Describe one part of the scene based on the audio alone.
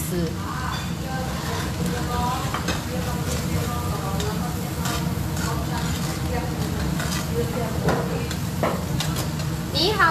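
Sauce bubbles and simmers in a pan.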